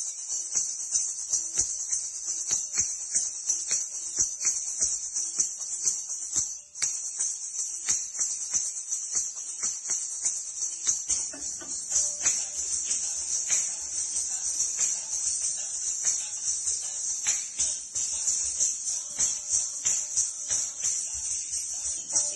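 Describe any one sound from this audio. Bare feet stamp on a hard floor in a steady rhythm.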